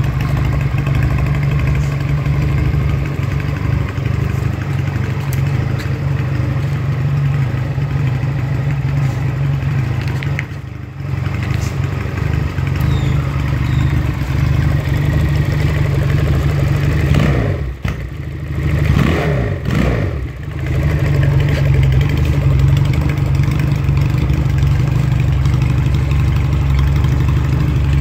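A motorcycle engine idles with a steady, deep rumble.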